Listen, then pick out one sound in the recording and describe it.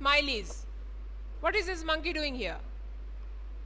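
A woman speaks with animation, close to a microphone, in short bursts.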